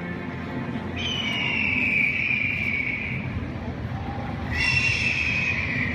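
A hovering craft gives off a high, wavering whine.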